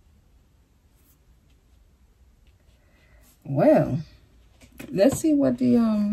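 Cards slide softly across a cloth.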